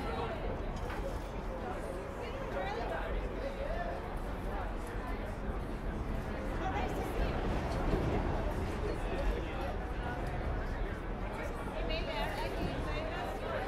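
A live band plays loudly outdoors, with guitar and drums.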